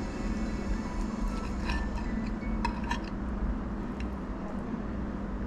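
A knife and fork scrape and clink against a plate.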